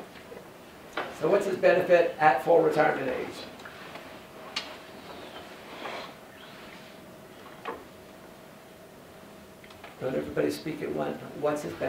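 A middle-aged man speaks in short bursts in a room with a slight echo.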